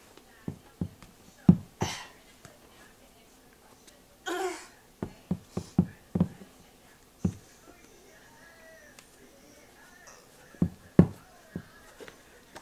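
Shoes knock against a wall with dull thuds.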